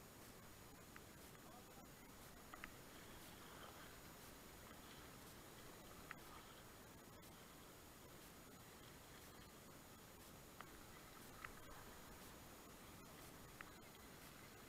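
A paddle splashes and knocks against a kayak.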